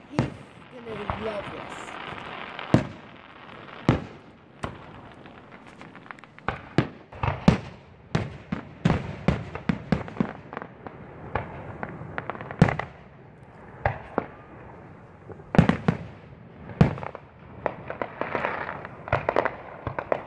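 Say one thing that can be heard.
Fireworks crackle and sizzle after bursting.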